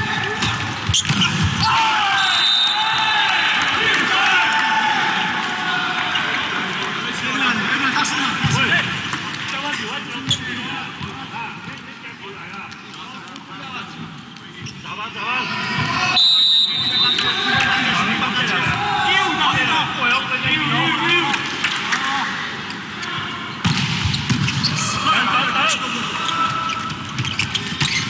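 A volleyball is struck with hard slaps.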